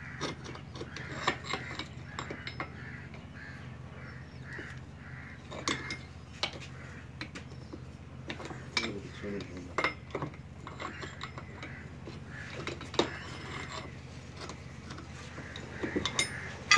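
A wrench clanks against metal gears.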